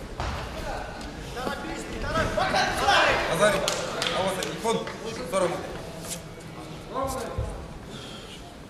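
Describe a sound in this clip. A crowd of spectators shouts and cheers in a large echoing hall.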